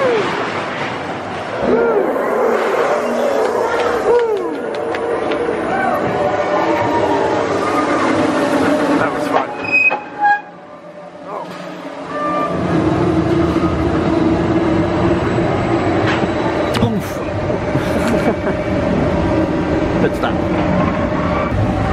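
A ride car rumbles and clatters along metal rails.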